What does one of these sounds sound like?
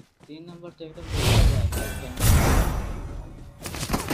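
A magical portal whooshes loudly.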